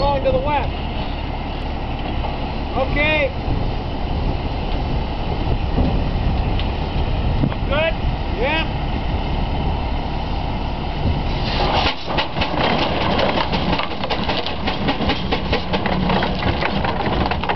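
A steam traction engine chugs and rumbles nearby.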